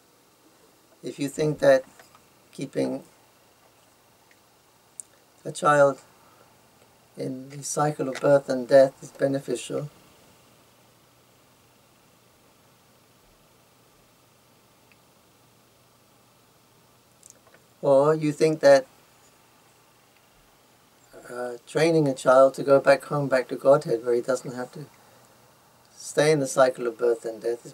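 An elderly man speaks calmly and slowly into a close microphone, with long pauses.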